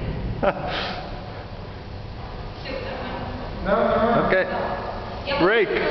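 A bicycle rolls over a hard floor in a large echoing space.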